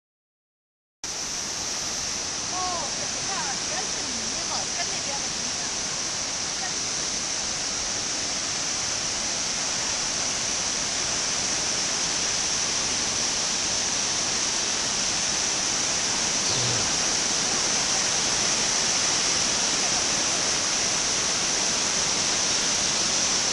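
Water rushes and splashes steadily down cascades outdoors.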